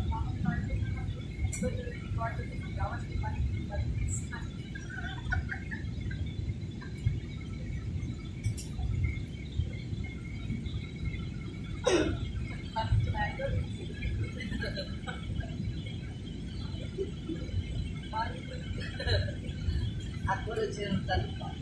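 A jet engine roars steadily with a low rumble throughout the cabin.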